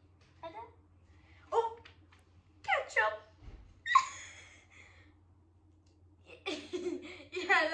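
A young girl laughs.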